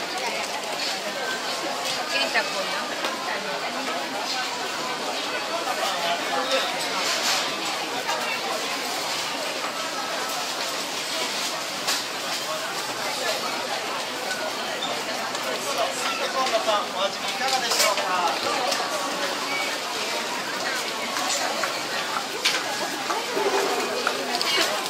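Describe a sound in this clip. Footsteps clatter on a hard floor.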